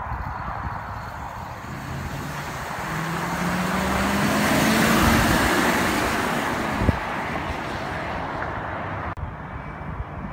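A van engine hums as it drives past and fades away.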